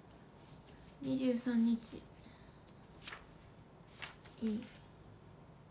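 A young woman speaks softly in short bursts close to a microphone.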